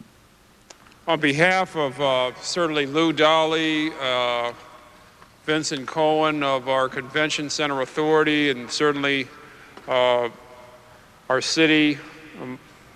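A man speaks calmly into a microphone, his voice carried over loudspeakers.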